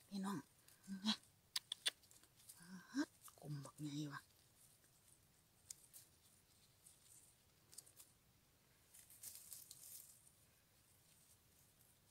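Dry leaves and grass rustle as they are handled.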